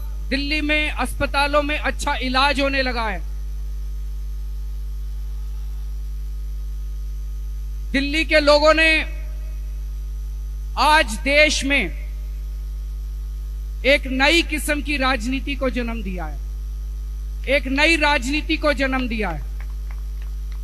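A man speaks loudly into a microphone over a loudspeaker, in short bursts with pauses.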